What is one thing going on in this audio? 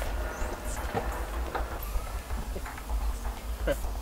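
A car's tailgate clicks open.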